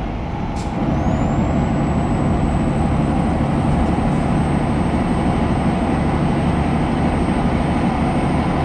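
A truck engine drones steadily while driving on a highway.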